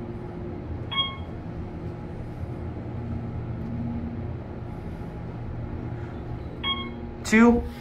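An elevator chime dings.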